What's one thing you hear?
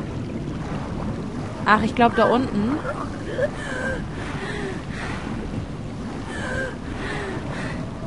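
Water bubbles and gurgles steadily.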